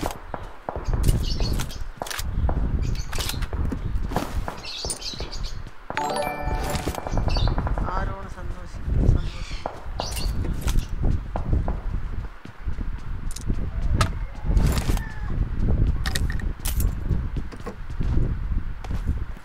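Footsteps thud quickly on grass and wooden floors.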